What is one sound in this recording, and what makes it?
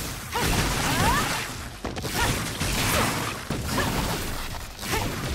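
Electric zaps hiss and sizzle.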